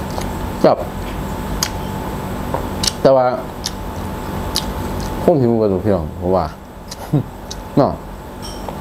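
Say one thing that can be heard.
A man chews food and smacks his lips close by.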